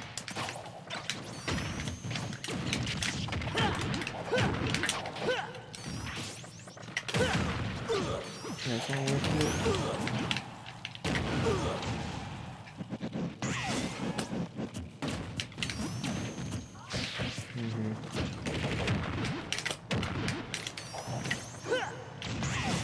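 Punches, blasts and explosions from a fighting video game crack and boom in quick succession.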